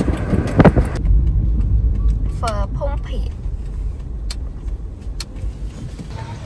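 A car engine hums low from inside the vehicle.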